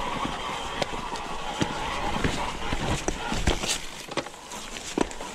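Bicycle tyres crunch and bump over a rough, leaf-covered dirt trail.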